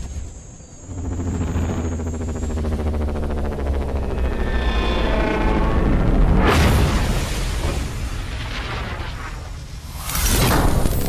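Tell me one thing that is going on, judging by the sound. A flying craft's engines roar steadily.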